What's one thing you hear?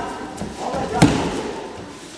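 A body thuds onto a mat.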